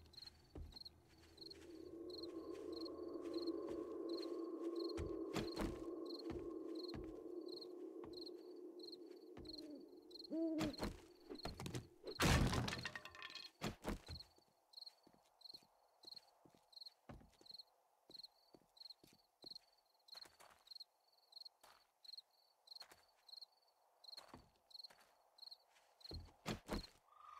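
Footsteps thud steadily on a roof and wooden floorboards.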